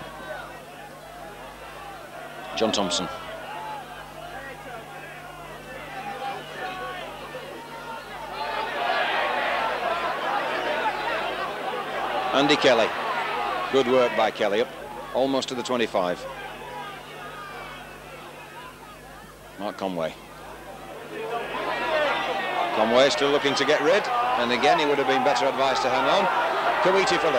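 A large crowd cheers and roars outdoors, swelling at times.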